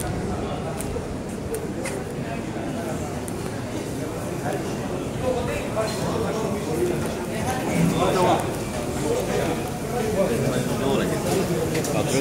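A crowd of men and women chatter in the background.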